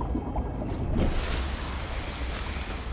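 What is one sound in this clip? Water splashes loudly as a swimmer breaks the surface.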